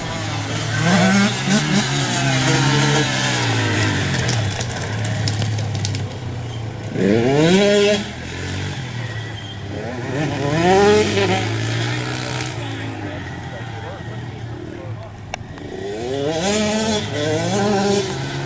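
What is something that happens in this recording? Dirt bike engines buzz and rev loudly as the bikes race around a track outdoors.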